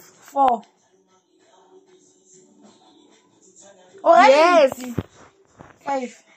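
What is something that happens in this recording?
A young child speaks close by in a high voice.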